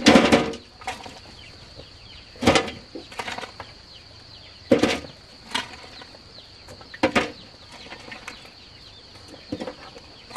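Hoes scrape and chop into dry soil in repeated strokes.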